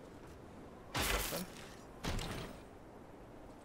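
A wooden chest creaks open with a heavy thud.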